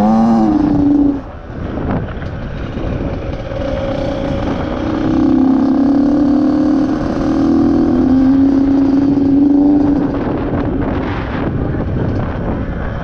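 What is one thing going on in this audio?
Wind rushes past a helmet.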